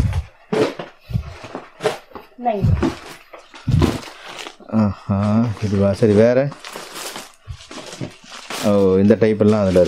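Cardboard boxes and plastic wrapping rustle as they are handled.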